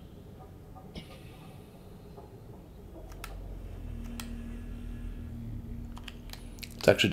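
Menu selections click softly.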